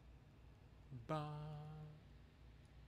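A man exclaims close to a microphone.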